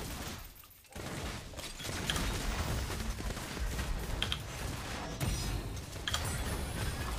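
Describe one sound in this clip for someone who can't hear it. Video game combat effects clash and crackle.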